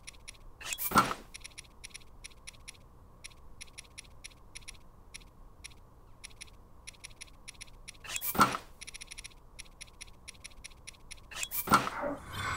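Short electronic ticks click rapidly as a menu selection moves.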